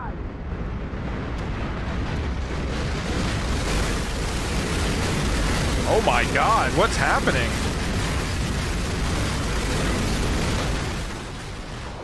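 A wrecked car tumbles and crashes with a loud, steady rumbling roar.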